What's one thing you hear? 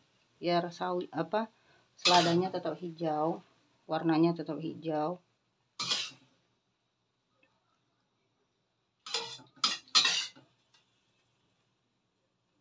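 A metal utensil scrapes and clinks against a ceramic plate.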